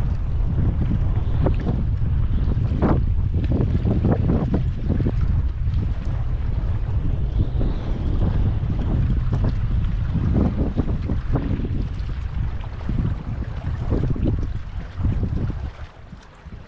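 Wind rumbles loudly across open water.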